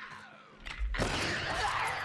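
A gunshot bangs sharply.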